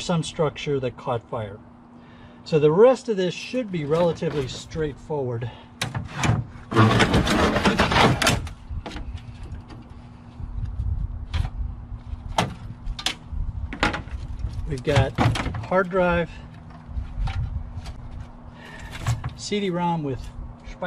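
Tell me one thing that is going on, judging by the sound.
A man talks calmly, close by.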